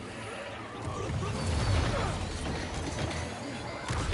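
Punches and blasts thud in a fight.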